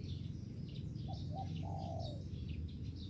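A dove coos softly nearby.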